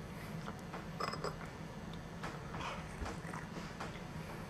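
A cup clinks on a saucer.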